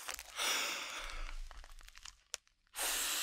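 A plastic bag crinkles in a man's hands close to a microphone.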